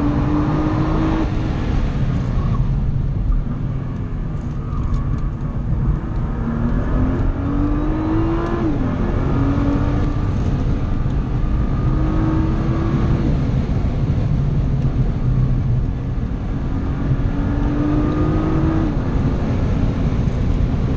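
Road and wind noise rumble steadily around the car.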